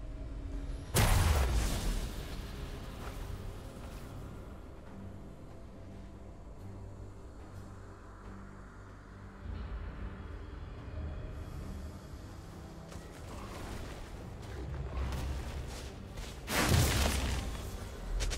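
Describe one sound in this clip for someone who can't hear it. A game character's spell bursts with a loud whoosh.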